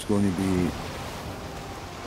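Waves splash against the bow of a wooden boat.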